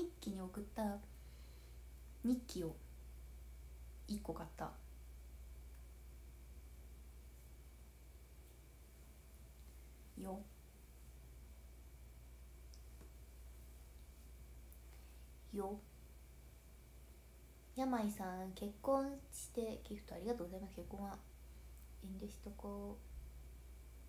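A young woman talks softly and casually into a nearby microphone, in short bursts with pauses.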